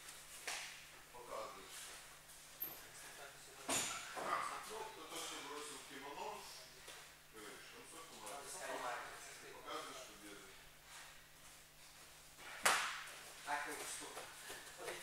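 A man speaks calmly in an echoing hall.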